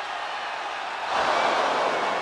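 A wrestler lands with a thud on the ring mat.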